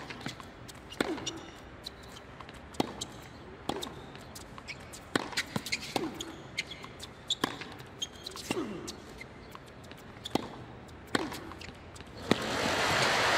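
Tennis balls are struck sharply back and forth with rackets.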